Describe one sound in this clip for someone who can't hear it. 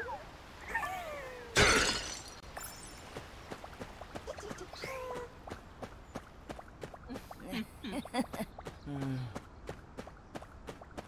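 Quick footsteps patter on stone as a game figure runs.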